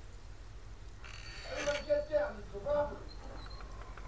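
A door opens with a rattle.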